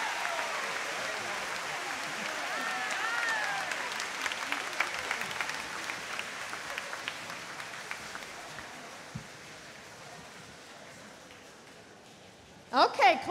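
An audience applauds in a large echoing hall, slowly fading.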